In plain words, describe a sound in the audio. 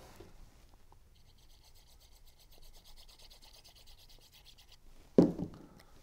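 A glue pen scrapes and squeaks against paper.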